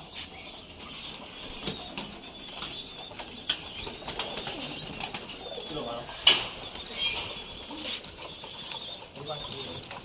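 Wire cage doors rattle and clink.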